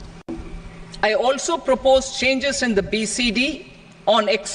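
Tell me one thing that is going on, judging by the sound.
A woman speaks formally through a microphone.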